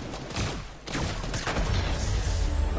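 A shotgun fires.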